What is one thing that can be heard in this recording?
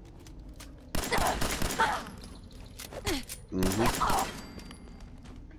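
Pistol shots bang loudly, one after another.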